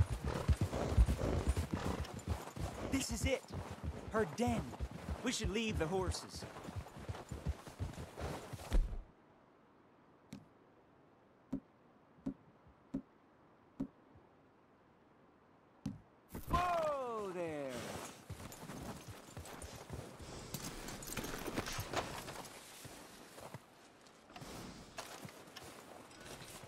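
Horses' hooves clop on rocky, snowy ground.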